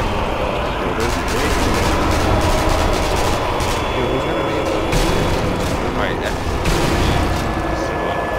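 Gunshots crack one after another.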